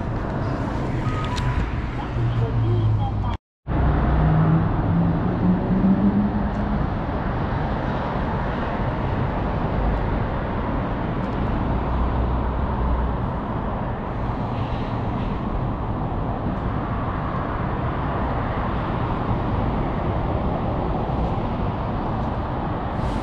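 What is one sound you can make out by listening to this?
Traffic hums steadily along a city street outdoors.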